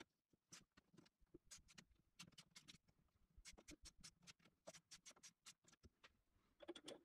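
Small metal parts click and rattle as they are fitted together.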